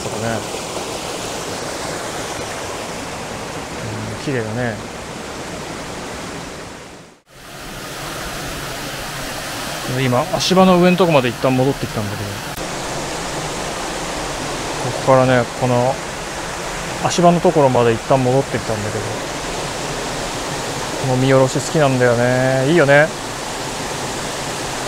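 A stream rushes steadily over rocks.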